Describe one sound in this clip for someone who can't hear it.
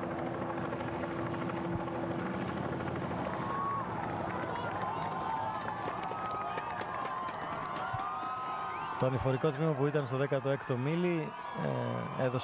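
A crowd cheers and whistles along the roadside.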